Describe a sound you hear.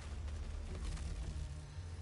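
Electric crackling snaps loudly.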